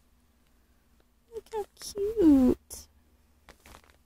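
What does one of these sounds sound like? Plastic wrapping crinkles under a finger.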